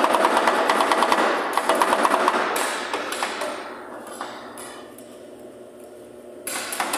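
Metal spatulas scrape and tap rapidly against a cold metal plate.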